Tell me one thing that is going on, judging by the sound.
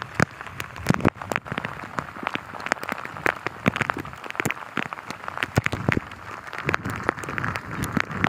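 Floodwater rushes and churns steadily.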